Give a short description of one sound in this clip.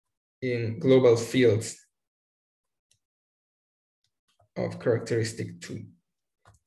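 A man speaks calmly through a microphone, as in an online call.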